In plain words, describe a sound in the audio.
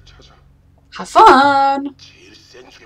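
A young woman exclaims loudly.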